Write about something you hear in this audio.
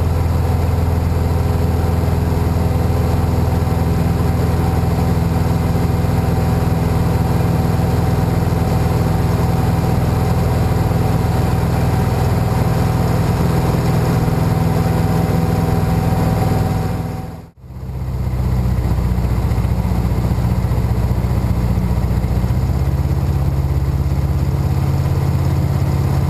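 A small plane's propeller engine drones loudly and steadily up close.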